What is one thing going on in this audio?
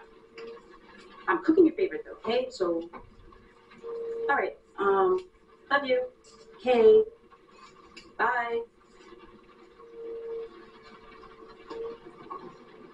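A young woman talks calmly on a phone nearby.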